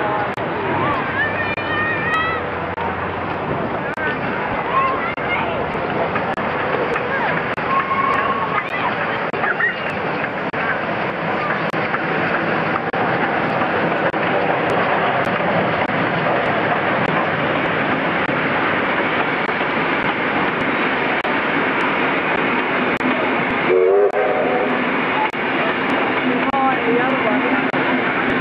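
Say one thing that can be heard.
A steam locomotive chugs loudly close by.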